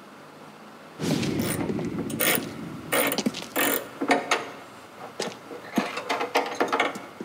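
A man speaks calmly in a low voice.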